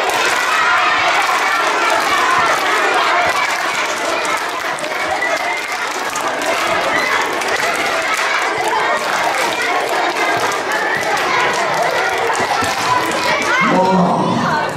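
A crowd of children and adults chatters in a large echoing hall.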